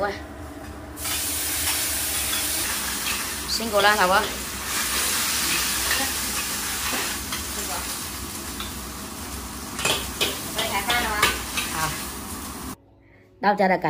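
Food sizzles and fries loudly in a hot wok.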